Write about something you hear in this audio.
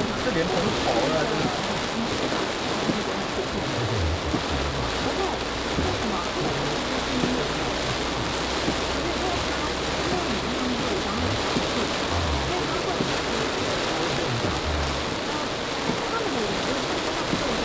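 Heavy rain pelts a car's windscreen.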